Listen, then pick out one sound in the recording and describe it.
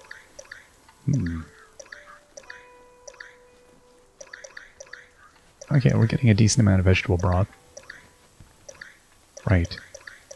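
Soft game menu blips tick each time a selection moves.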